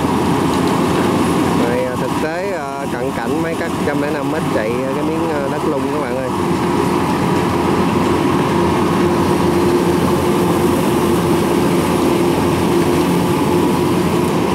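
A combine harvester engine drones steadily nearby.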